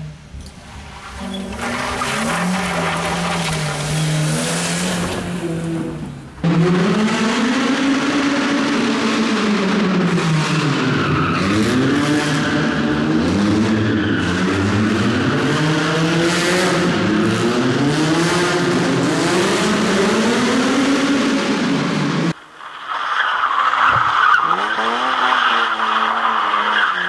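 A rally car engine revs hard, rising and falling in pitch.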